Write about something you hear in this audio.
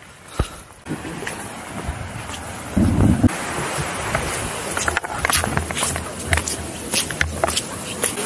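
An off-road vehicle's engine rumbles as it crawls down a rough track.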